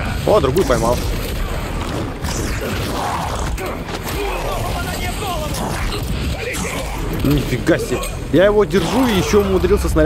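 Heavy blows land with loud thuds.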